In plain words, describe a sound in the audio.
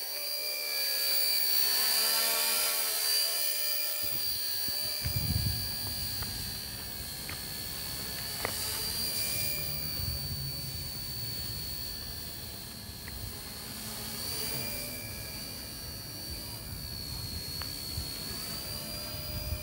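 A small model helicopter's motor whines steadily overhead, rising and falling slightly.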